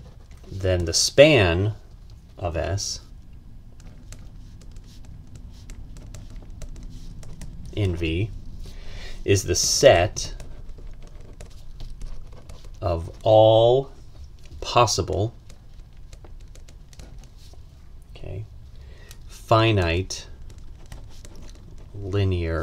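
A felt-tip pen scratches softly across paper.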